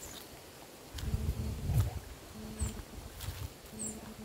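Footsteps crunch on dry leaves and dirt.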